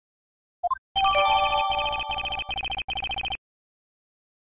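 A short bright electronic jingle plays.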